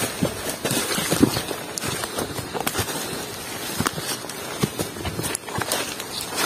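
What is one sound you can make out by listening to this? Leaves and branches rustle as someone brushes past them.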